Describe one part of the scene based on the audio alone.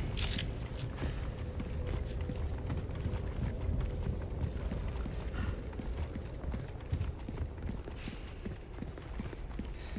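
Footsteps crunch on a dirt floor.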